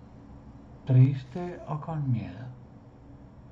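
An older man speaks briefly over an online call.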